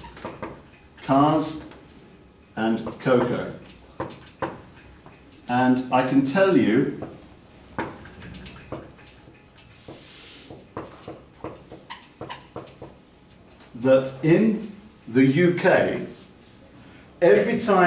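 A man speaks calmly and clearly nearby, as if explaining.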